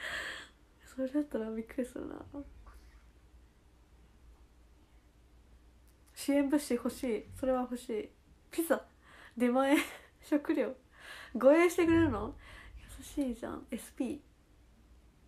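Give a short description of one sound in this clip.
A young woman speaks softly and cheerfully close to a microphone.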